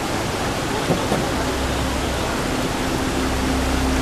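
Water rushes over rocks in a stream.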